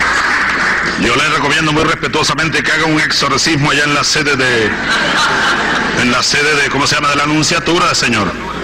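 A man speaks forcefully through a microphone, echoing in a large hall.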